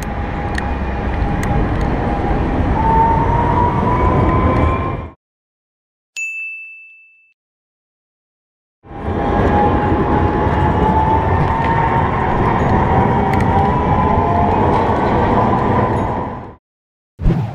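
A tram rolls past close by with a whining motor.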